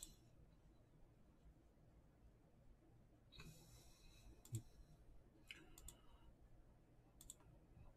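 Keyboard keys click softly.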